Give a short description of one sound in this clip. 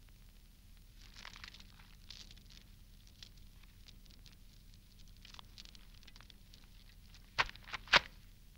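Footsteps tap lightly across a hard floor.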